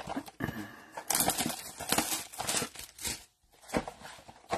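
Plastic wrap crinkles and tears as it is pulled off.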